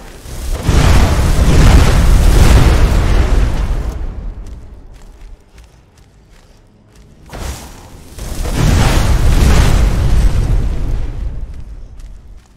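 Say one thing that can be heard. A fiery blast roars and rumbles.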